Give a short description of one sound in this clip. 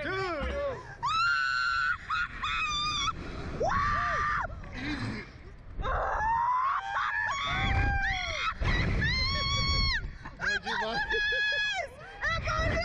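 A young woman screams with high, drawn-out shrieks.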